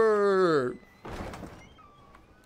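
A heavy wooden door swings shut with a thud.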